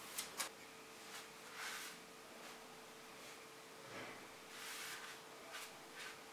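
A hand rubs along a wooden stool.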